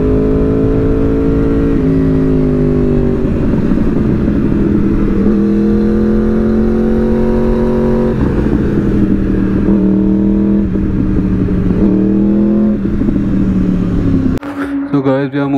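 A motorcycle engine roars loudly, its revs rising and falling as it speeds along.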